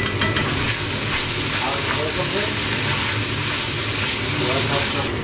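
A stew sizzles and bubbles in a pot.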